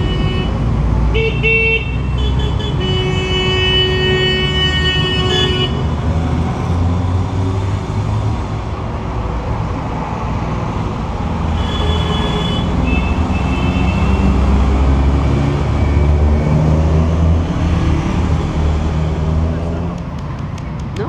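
A motorcycle engine idles with a low, steady rumble.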